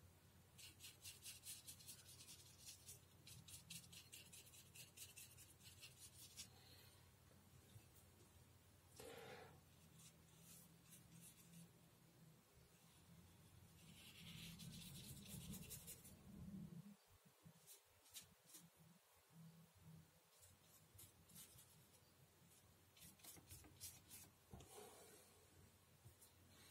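A paintbrush softly strokes across paper.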